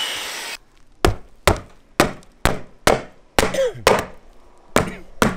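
A hammer knocks sharply on wood, striking again and again.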